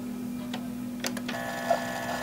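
A coffee machine lid snaps shut with a click.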